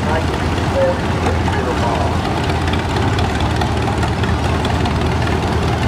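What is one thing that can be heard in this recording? An old tractor engine chugs steadily and loudly close by.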